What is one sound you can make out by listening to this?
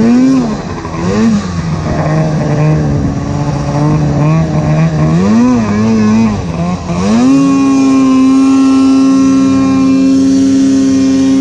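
A snowmobile engine drones up close, rising and falling in pitch before holding a steady high whine.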